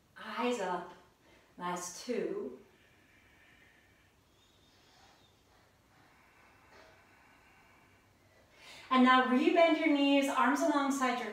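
A woman speaks calmly and clearly, as if giving instructions.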